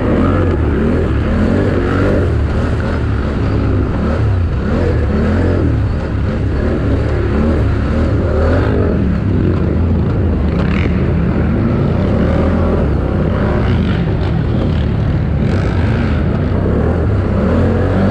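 Tyres churn and thump over rough muddy ground.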